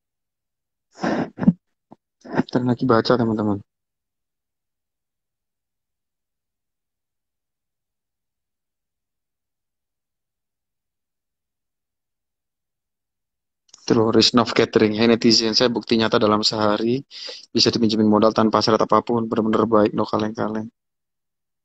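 A young man speaks calmly, close to a phone microphone.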